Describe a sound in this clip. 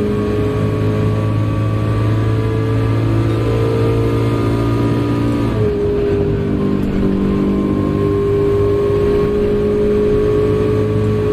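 A racing car engine roars at high revs, drops in pitch as the car slows, then climbs again.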